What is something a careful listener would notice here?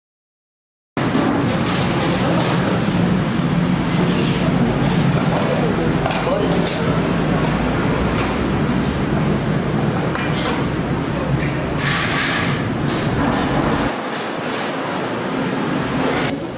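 A crowd murmurs and chatters in an echoing hall.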